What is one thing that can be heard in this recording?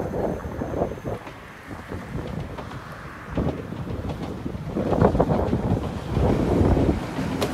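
A train rumbles along the tracks, growing louder as it approaches.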